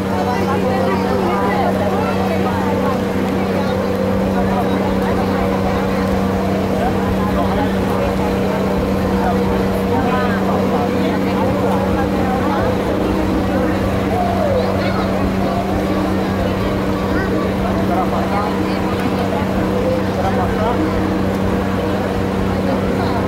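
A crowd of young people chatters and calls out nearby.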